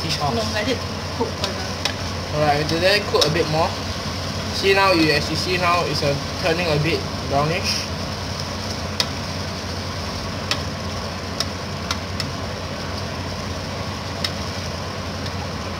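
A spatula scrapes and stirs against a metal pot.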